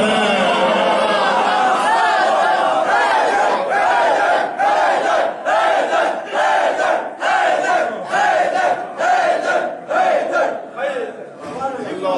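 A man chants in a melodic voice through a microphone.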